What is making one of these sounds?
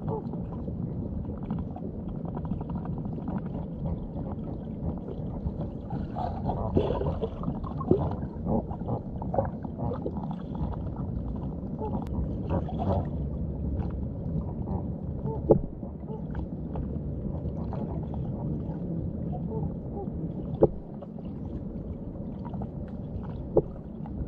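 Birds' feet and beaks stir the sandy bottom with soft scrapes and clicks.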